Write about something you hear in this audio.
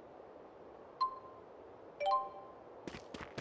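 A soft electronic blip sounds twice.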